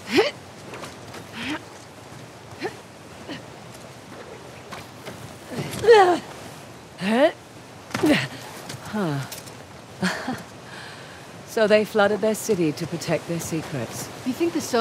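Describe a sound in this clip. Footsteps crunch over stone and grass.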